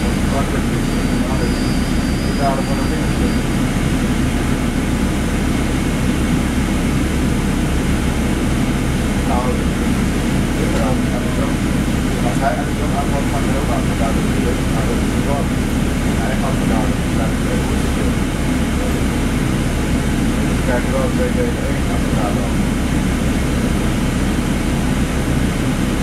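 A bus engine rumbles steadily with a low hum from inside the bus.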